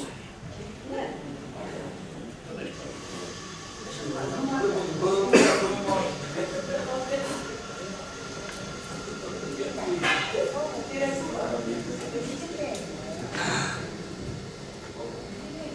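A man speaks calmly into a microphone in a room with some echo.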